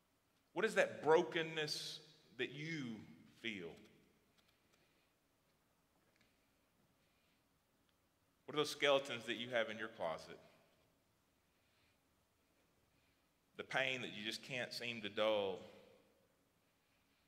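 A man speaks slowly and solemnly through a microphone in a large echoing hall.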